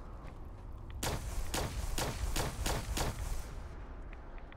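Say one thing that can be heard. A rifle fires a rapid string of loud shots close by.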